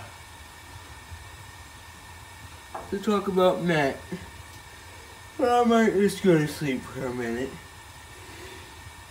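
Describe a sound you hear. Gas flames hiss softly and steadily.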